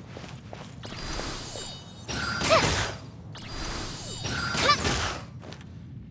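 A magical blast whooshes and crackles loudly.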